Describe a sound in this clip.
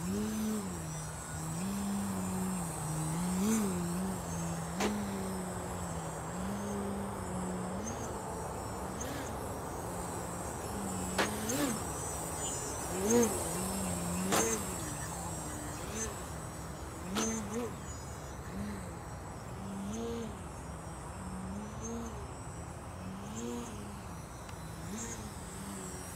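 A small model plane engine buzzes steadily nearby, its pitch rising and falling as it turns.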